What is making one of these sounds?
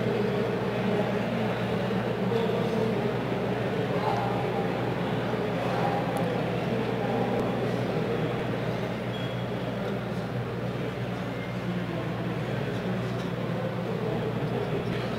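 A man speaks with animation over a loudspeaker in a large hall.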